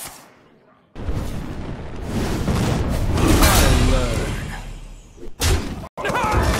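A fiery burst whooshes and explodes.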